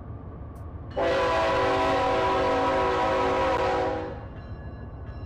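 A train horn blasts loudly and then fades.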